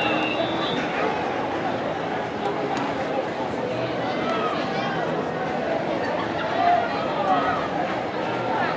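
A crowd of people chatters and calls out outdoors.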